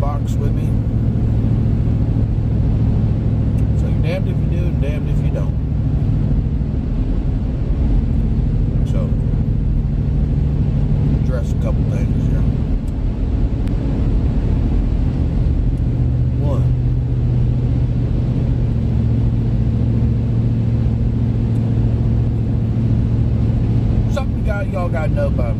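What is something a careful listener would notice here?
A car engine and tyres rumble steadily while driving.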